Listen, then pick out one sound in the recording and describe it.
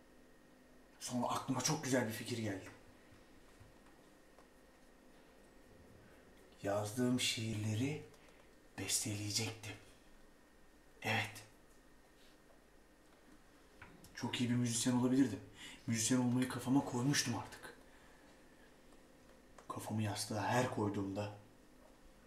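A young man speaks close by in short, calm bursts with pauses between.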